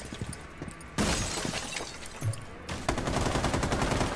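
An explosion blasts through a wall.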